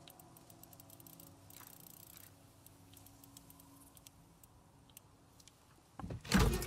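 A combination dial clicks softly as it turns.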